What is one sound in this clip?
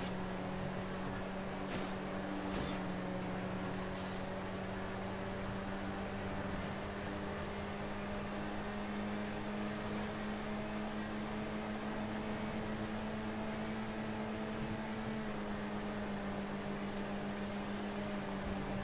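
A sports car engine hums steadily at speed.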